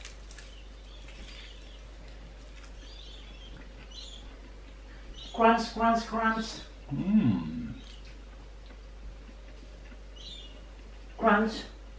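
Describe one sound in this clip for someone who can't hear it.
An older man chews food.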